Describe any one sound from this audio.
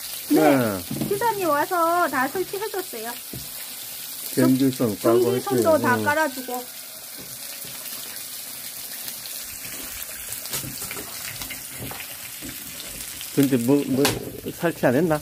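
A woman speaks in a lively, sing-song voice close by.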